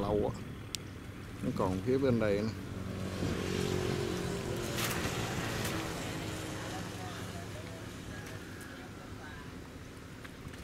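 Water splashes as men wade through it.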